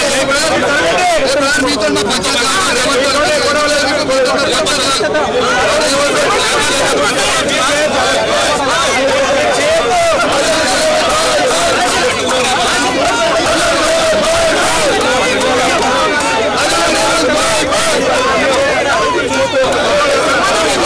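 A crowd of men shouts and argues loudly close by.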